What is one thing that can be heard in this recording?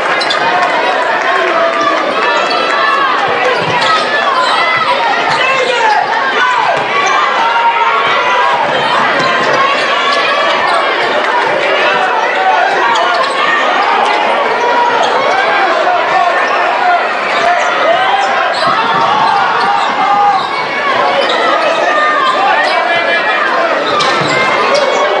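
A large crowd cheers and chatters loudly in an echoing gym.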